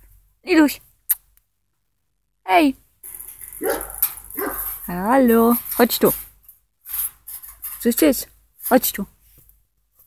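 A dog barks nearby.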